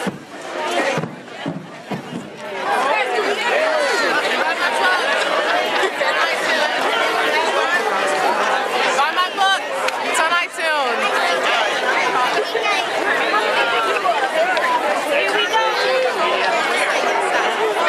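A large crowd of men and women chatters all around, close by, outdoors.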